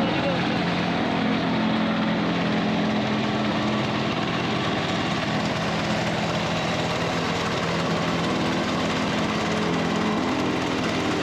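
A small road roller's engine rumbles loudly and steadily close by.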